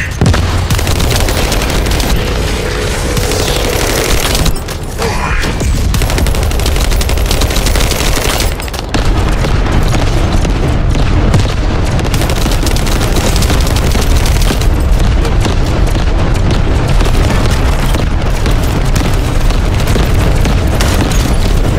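Energy blasts and explosions roar.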